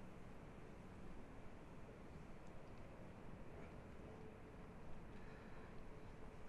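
A hand softly strokes a cat's fur.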